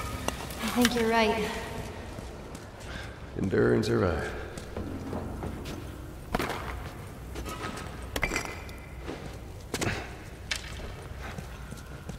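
Footsteps scuff along a hard, gritty floor.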